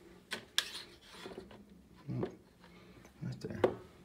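Plastic trays clatter and click as a hand handles them.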